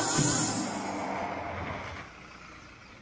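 A car engine runs and then stops.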